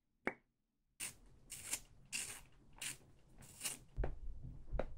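A pencil grinds in a small handheld sharpener.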